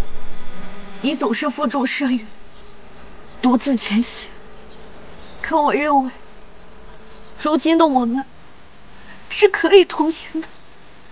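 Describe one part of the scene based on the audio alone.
A young woman speaks tearfully in short, broken phrases.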